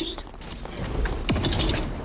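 A fireball whooshes through the air.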